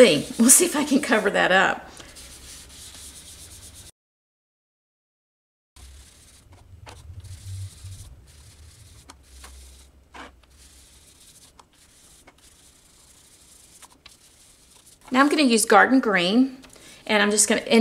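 A sponge rubs and dabs softly on paper.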